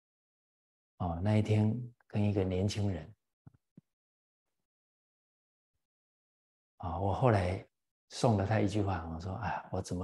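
An elderly man speaks calmly and warmly into a close microphone, pausing between phrases.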